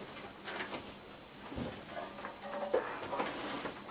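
Clothing rustles and bumps close by as a man moves.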